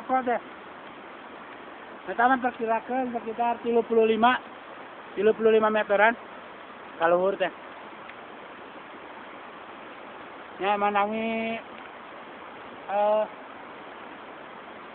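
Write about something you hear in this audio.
A waterfall rushes and splashes steadily close by.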